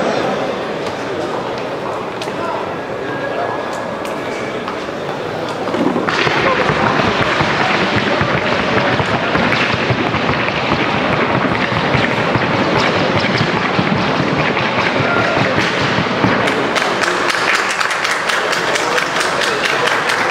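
Horses' hooves thud softly on a dirt arena.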